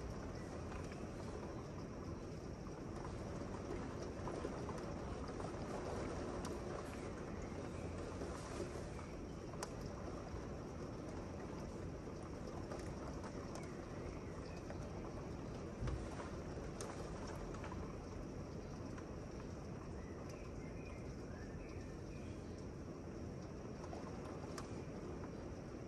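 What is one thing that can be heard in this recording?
Steady rain falls outdoors, heard through a window.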